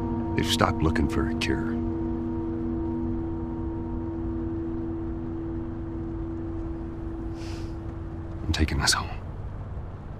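A man speaks quietly and calmly nearby.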